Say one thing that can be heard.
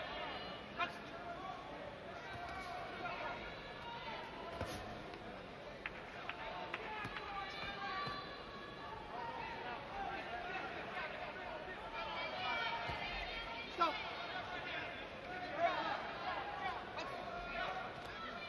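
A crowd murmurs and cheers in a large arena.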